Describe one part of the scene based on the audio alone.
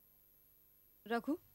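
A young woman speaks briefly, close by.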